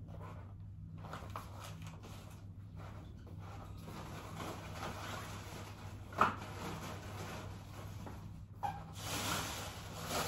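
Footsteps pad across a hard floor.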